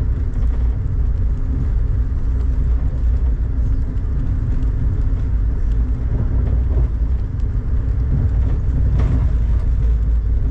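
Rain taps against a window.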